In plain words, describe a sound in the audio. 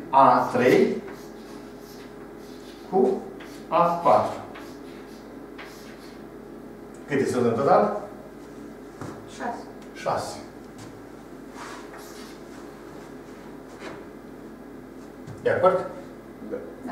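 An elderly man speaks calmly in bursts, with pauses.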